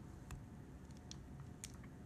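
Liquid pours from a bottle onto beans.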